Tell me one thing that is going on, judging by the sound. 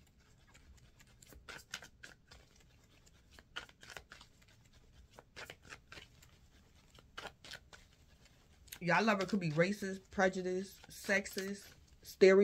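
Paper bills flick softly as they are counted.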